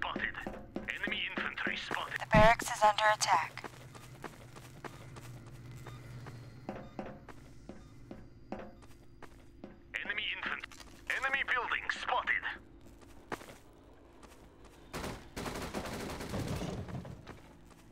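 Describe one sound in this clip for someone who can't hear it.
Footsteps thud on hard ground.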